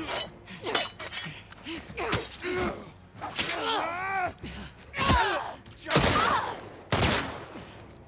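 Heavy punches land with dull thuds.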